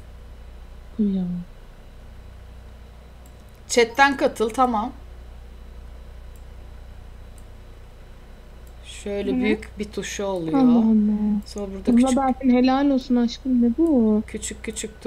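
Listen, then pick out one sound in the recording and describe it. A young woman talks with animation, close to a microphone.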